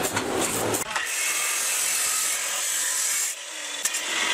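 A cut-off saw screeches through metal.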